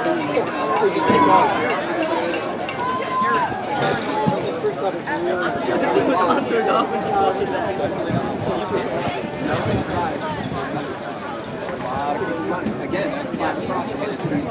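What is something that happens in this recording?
A crowd of people chatter and call out outdoors.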